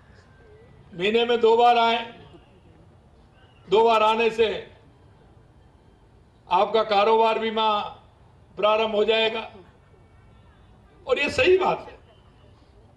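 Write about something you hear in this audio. A middle-aged man speaks through a microphone in slow, drawn-out phrases with pauses between them.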